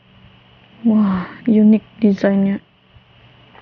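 A young woman speaks briefly, close to a microphone.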